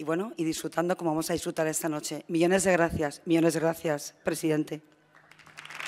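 A woman speaks with emotion into a microphone, heard through loudspeakers in a large echoing hall.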